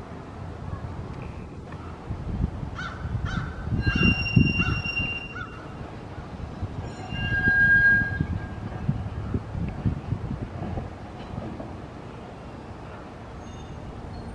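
A streetcar rumbles slowly along its rails.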